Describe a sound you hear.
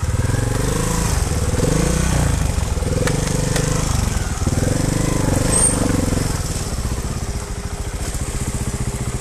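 A dirt bike engine revs and putters loudly close by.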